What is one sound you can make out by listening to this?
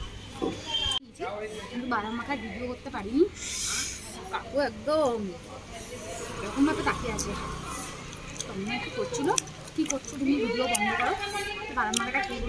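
A young woman speaks to the listener up close, in a lively, chatty way.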